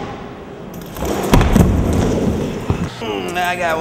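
A skateboard clatters against a ramp.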